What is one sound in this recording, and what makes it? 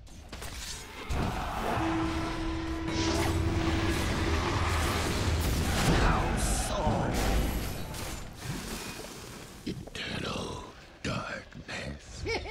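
Magic blasts and clashing hits crackle in a fast fight.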